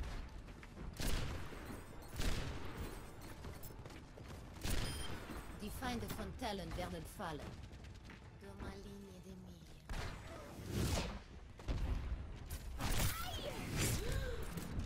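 Gunshots ring out in short, sharp bursts.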